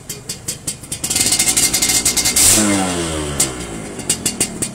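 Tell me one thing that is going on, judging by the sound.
A motorcycle engine revs up briefly and settles back down.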